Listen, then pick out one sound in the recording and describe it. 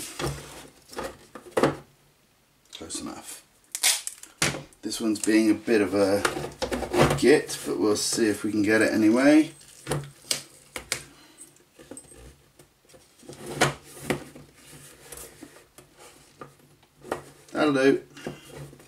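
Light knocks and rustles come from plastic and cardboard parts being handled on a table.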